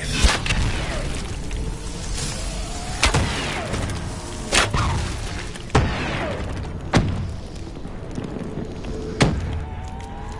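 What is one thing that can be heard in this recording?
Guns fire in loud single shots with a ringing echo.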